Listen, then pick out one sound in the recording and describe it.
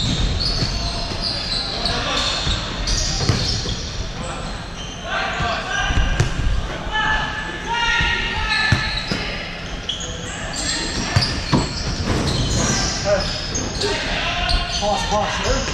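Players' shoes squeak on the floor of a large echoing hall.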